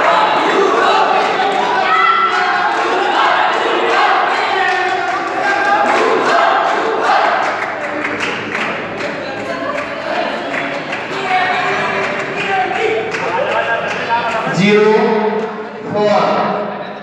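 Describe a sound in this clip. A crowd of young men chatters and shouts loudly in an echoing hall.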